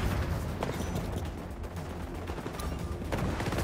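Footsteps thud quickly over hard ground.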